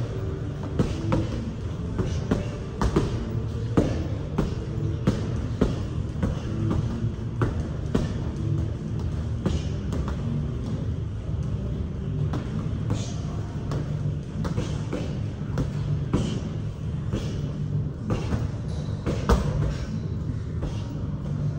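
Punches and kicks thud against heavy bags in a large echoing room.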